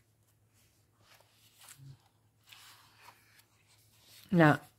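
A page of paper turns with a soft rustle.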